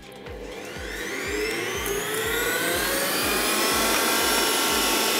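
A stand mixer motor starts up and whirs, rising in pitch as it speeds up.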